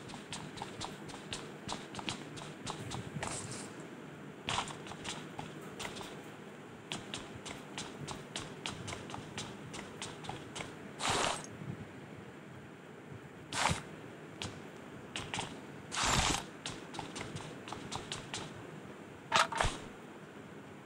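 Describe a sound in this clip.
Footsteps run on a hard tiled floor.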